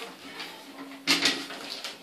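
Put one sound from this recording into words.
A tile cutter rattles and scrapes on a hard floor.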